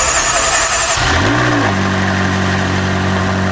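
A sports car engine starts up with a loud roar.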